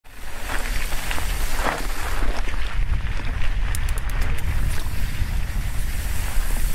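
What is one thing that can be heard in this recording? Wind rumbles loudly across the microphone outdoors.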